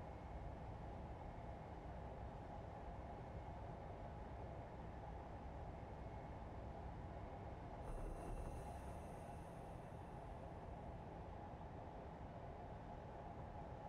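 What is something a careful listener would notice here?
A train engine rumbles steadily as wheels roll over the rails.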